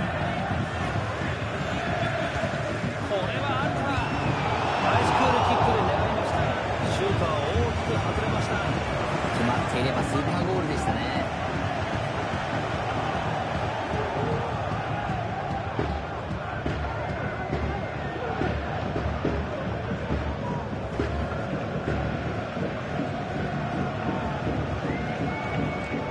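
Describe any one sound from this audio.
A large stadium crowd roars steadily, swelling loudly for a moment.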